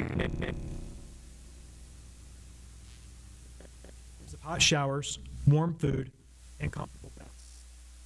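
A middle-aged man speaks through a microphone in a large room, pausing between phrases.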